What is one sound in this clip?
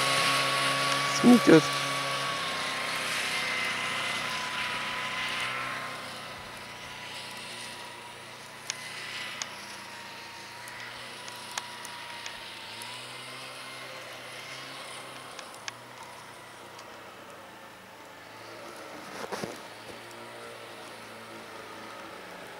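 A snowmobile engine drones, far off at first and then passing close by.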